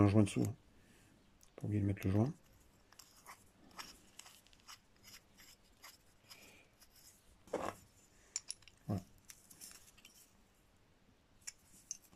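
Small metal parts click softly as a nut is unscrewed by hand.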